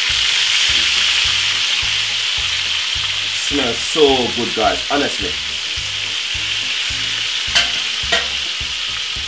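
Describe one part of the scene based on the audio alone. Metal tongs clink against a pan.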